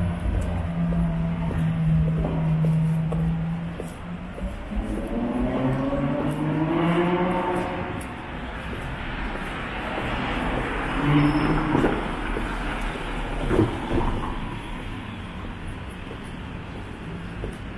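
A car drives slowly along the street.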